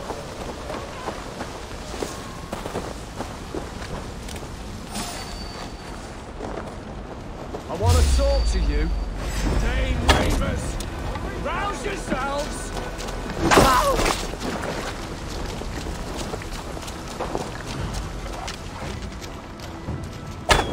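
Footsteps thud on wet ground.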